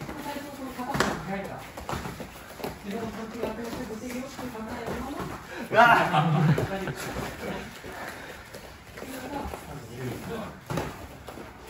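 Boxing gloves thump sharply in quick sparring.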